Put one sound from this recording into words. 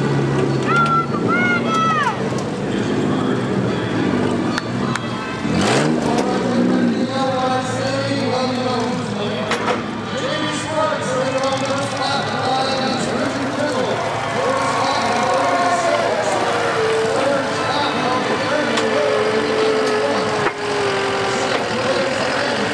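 Car engines rev and roar outdoors.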